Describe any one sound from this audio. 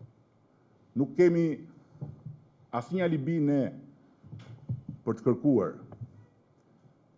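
A middle-aged man speaks calmly into a microphone, heard through loudspeakers.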